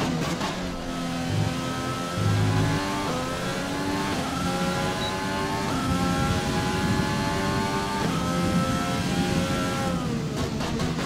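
A racing car engine screams, rising in pitch through each gear and dropping at each shift.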